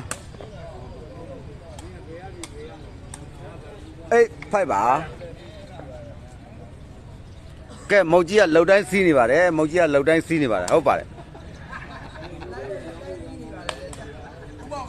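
A crowd of onlookers chatters in the background outdoors.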